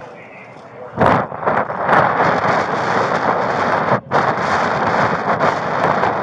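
Wind rushes loudly outdoors.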